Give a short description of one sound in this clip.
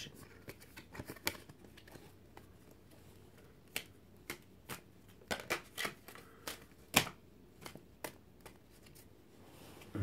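Cards click and tap against each other.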